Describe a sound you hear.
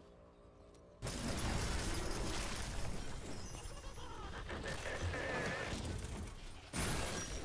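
Magic spells and weapon blows crash and burst in a fantasy battle.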